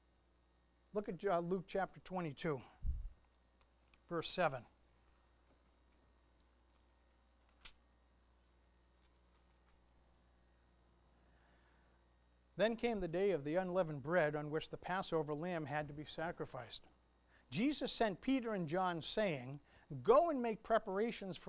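A middle-aged man speaks calmly into a microphone, with long pauses.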